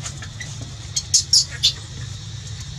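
A baby monkey squeaks with short, high cries.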